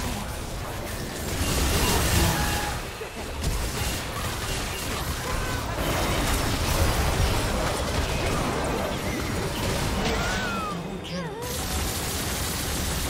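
Video game spells crackle and blast during a fight.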